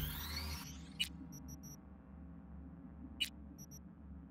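A menu selection clicks sharply.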